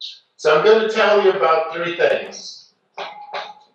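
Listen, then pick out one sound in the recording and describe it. A man speaks clearly to a room.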